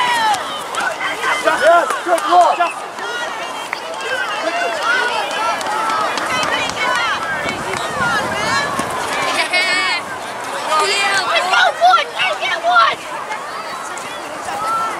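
Spectators on the sideline shout and cheer from a distance outdoors.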